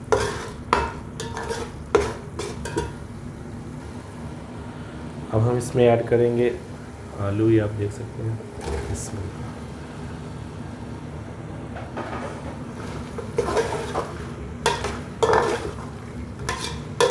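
A metal spatula scrapes and clatters against a metal pot.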